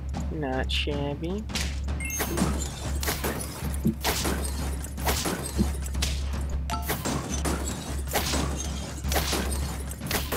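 Cartoon hits thump and pop during a battle.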